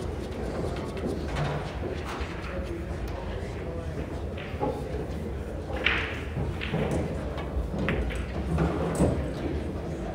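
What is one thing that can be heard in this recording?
Billiard balls click sharply on a nearby table.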